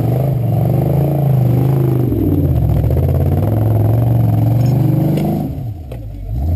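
An off-road Jeep's engine revs hard under load.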